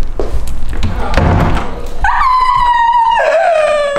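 A door handle rattles and clicks.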